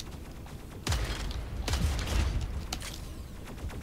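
Heavy gunfire blasts in loud bursts.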